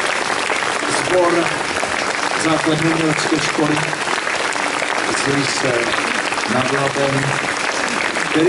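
A middle-aged man speaks into a microphone over a loudspeaker.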